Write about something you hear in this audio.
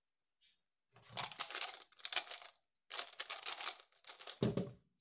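A plastic puzzle cube clicks and rattles as it is turned quickly.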